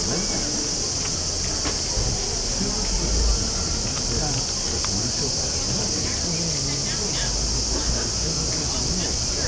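Men, women and children chatter nearby outdoors.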